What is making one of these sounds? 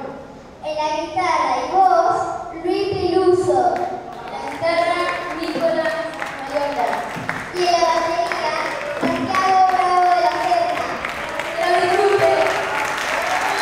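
A young girl speaks into a microphone over loudspeakers in an echoing hall.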